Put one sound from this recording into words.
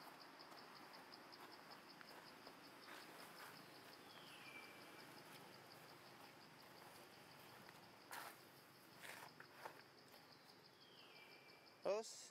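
Dry leaves rustle under a monkey's feet as it walks.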